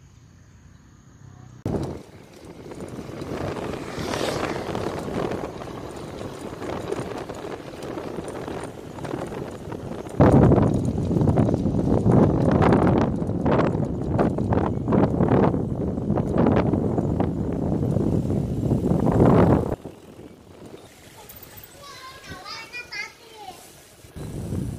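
Bicycle tyres roll over a paved road.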